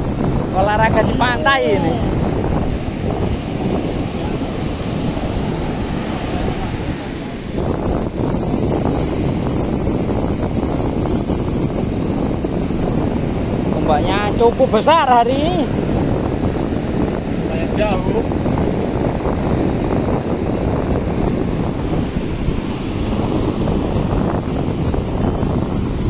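Waves crash and roll onto a beach.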